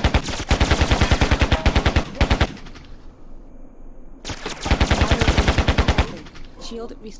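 A rapid-fire gun shoots in quick bursts, loud and close.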